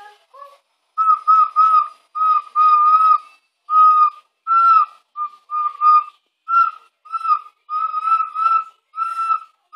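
A young girl blows a toy whistle in short, repeated toots.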